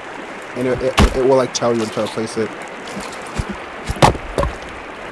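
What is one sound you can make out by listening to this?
An axe chops into a wooden stump with sharp thuds.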